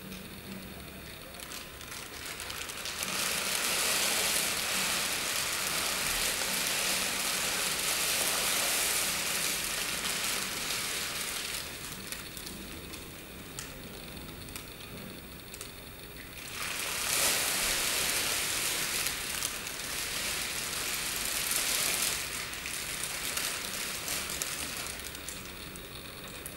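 Crinkly plastic sheeting rustles and crackles as a person rolls on the floor.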